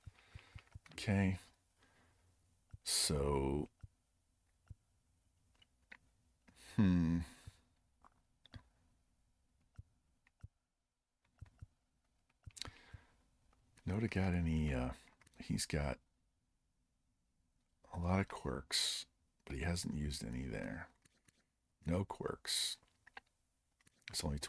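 A man talks casually and close into a microphone, in short bursts with pauses.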